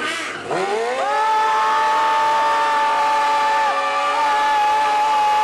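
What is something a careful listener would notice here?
Motorcycle tyres screech as they spin in place.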